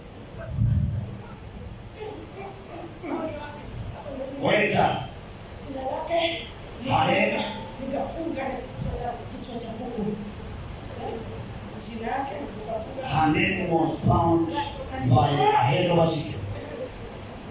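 A man speaks fervently through a microphone and loudspeaker in an echoing hall.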